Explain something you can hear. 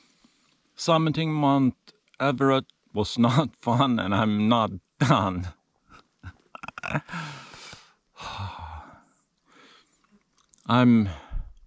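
A middle-aged man talks close to the microphone with animation.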